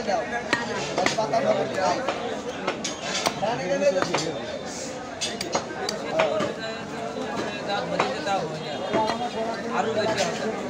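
A cleaver chops meat against a wooden block with sharp thuds.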